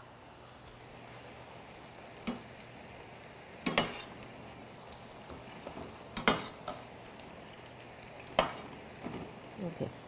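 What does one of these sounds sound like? A spatula scrapes and clinks against a pan.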